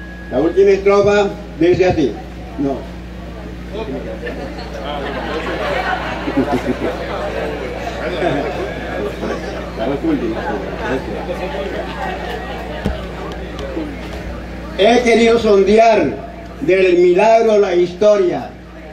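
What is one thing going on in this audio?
An elderly man speaks loudly with animation through a microphone and loudspeakers outdoors.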